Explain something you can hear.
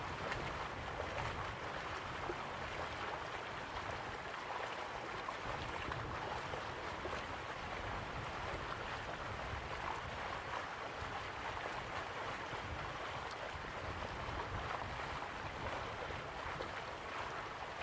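Waterfalls rush steadily in the distance.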